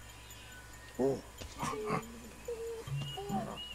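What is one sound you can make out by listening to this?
Apes hoot and grunt nearby.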